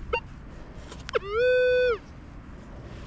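A metal detector sounds a longer warbling tone.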